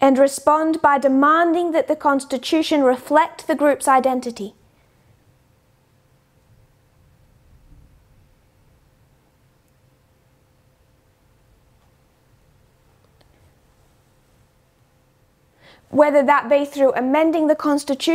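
A woman speaks calmly and clearly into a close microphone, pausing in between.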